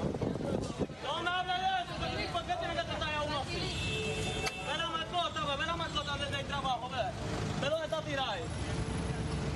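A woman shouts and argues nearby.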